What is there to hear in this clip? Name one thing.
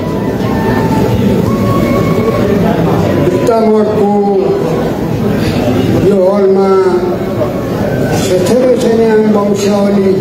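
A man sings loudly through a loudspeaker in an echoing hall.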